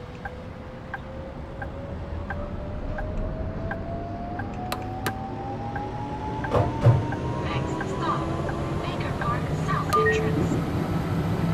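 An electric tram motor whines, rising in pitch as the tram speeds up.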